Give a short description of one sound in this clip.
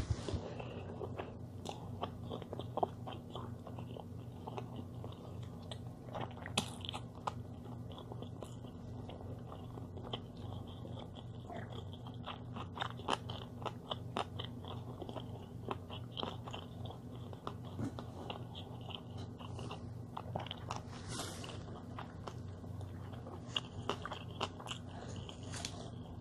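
Paper crinkles and rustles as it is unwrapped by hand.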